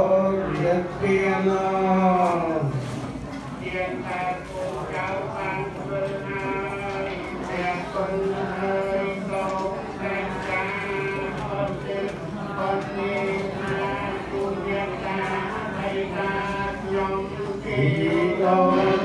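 A group of men and women chant together in a steady, droning rhythm.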